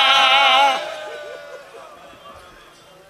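A man sings loudly into a microphone with a warbling voice, with echo.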